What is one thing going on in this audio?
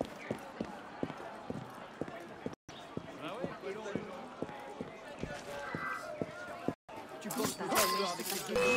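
Footsteps tap quickly on cobblestones.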